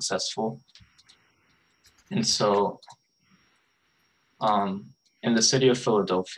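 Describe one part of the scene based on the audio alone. A man speaks calmly in short phrases, heard through an online call.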